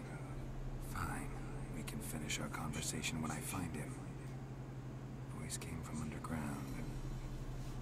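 A man speaks calmly in a low, gravelly voice.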